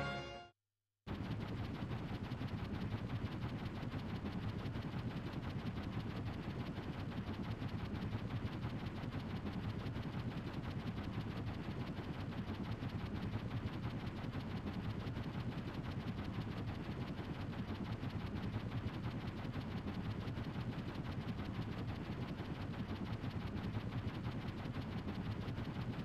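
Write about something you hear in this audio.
A low engine drone hums steadily.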